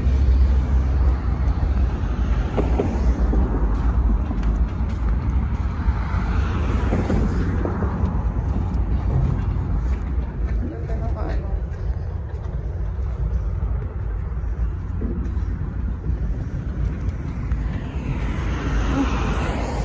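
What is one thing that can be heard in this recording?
Traffic rushes past on a nearby road.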